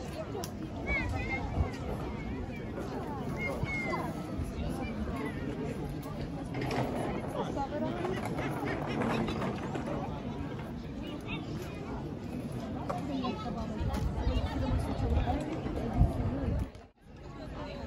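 A crowd chatters nearby outdoors.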